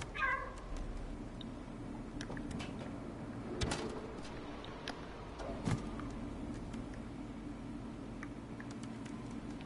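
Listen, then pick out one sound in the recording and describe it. A cat's paws patter lightly on a metal roof.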